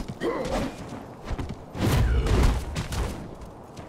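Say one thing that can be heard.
A grappling rope whips and zips through the air.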